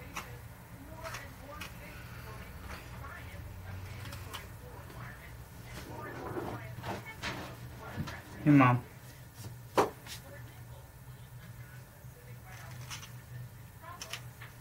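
A knife scrapes and whittles wood with small clicks.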